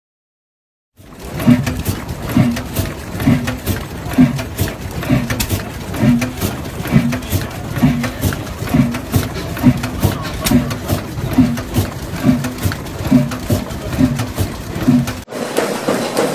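An old stationary diesel engine runs slowly with heavy, steady thumps.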